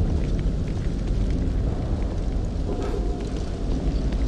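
Footsteps tread steadily on pavement.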